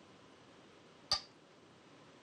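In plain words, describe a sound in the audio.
A game stone clicks onto a wooden board.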